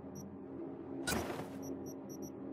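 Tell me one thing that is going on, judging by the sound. A brief electronic whoosh sounds.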